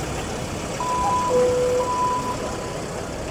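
A tram chimes a two-note signal.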